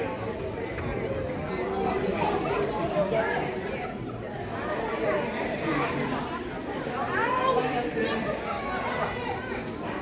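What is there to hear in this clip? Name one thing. A live band plays.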